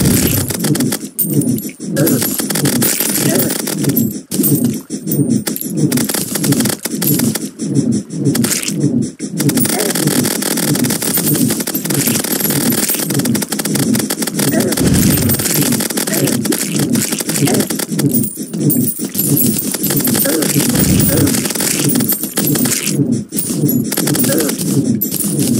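Rapid crackling hit sounds and small blasts go off over and over.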